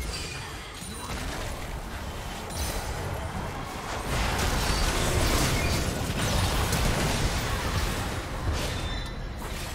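Magical blasts and hits crackle and burst during a fight.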